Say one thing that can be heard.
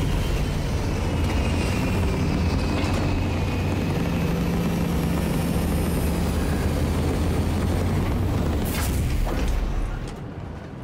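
A spacecraft's engines rumble deeply and steadily.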